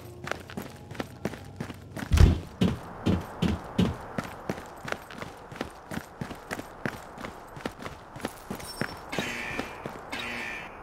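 Footsteps run quickly and steadily over hard ground.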